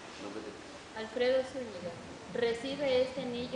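A young woman reads out from a paper.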